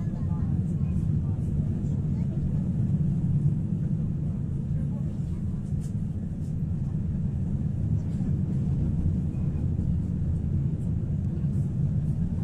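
A tram rumbles steadily along its rails, heard from inside.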